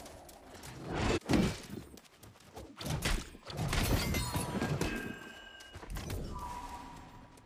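Blades clash and strike with sharp, ringing hits.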